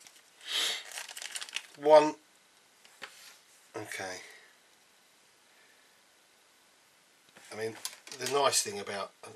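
Hard plastic parts click and tap together.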